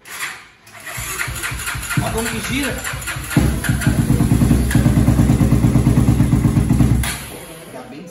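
A motorcycle engine starts and revs loudly.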